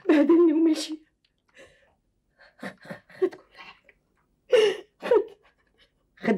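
A woman sobs and speaks in a tearful voice close by.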